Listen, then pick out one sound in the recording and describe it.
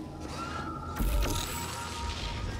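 An electric blast crackles and buzzes loudly.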